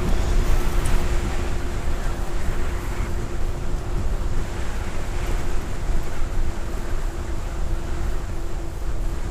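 Wind rumbles steadily against the microphone.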